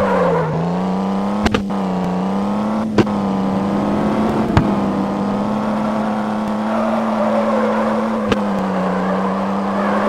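A car engine hums steadily, its pitch rising slightly as it speeds up.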